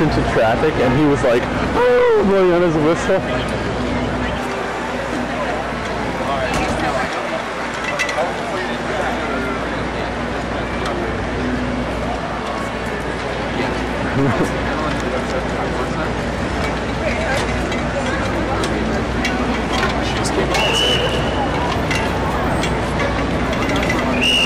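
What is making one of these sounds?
City traffic hums in the distance.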